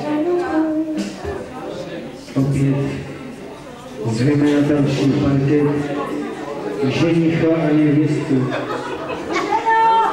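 A crowd of men and women chatter at a lively gathering in a large room.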